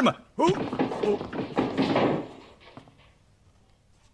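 A body falls heavily to the floor.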